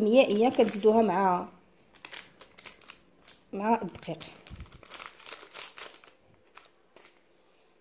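A paper sachet crinkles and rustles.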